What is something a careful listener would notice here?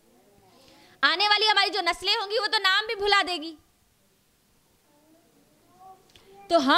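A woman speaks close into a microphone in a clear, melodic voice.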